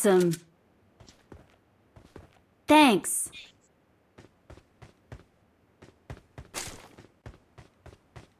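Footsteps run on concrete.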